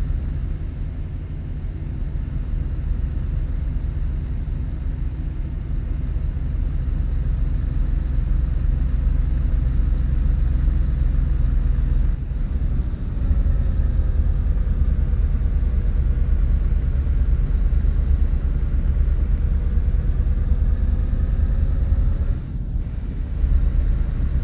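A truck engine rumbles steadily as it drives along.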